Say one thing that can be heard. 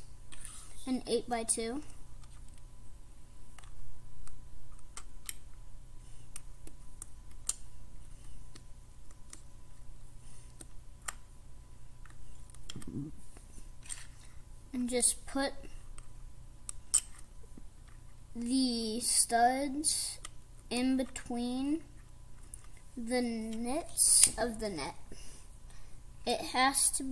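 Small plastic bricks click and snap together up close.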